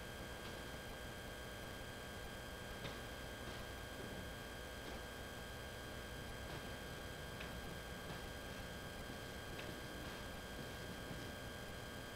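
Slow footsteps thud softly on wooden floorboards.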